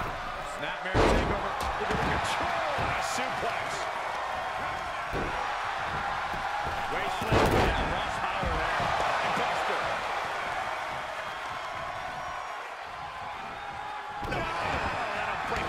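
Heavy thuds of bodies slam onto a wrestling mat.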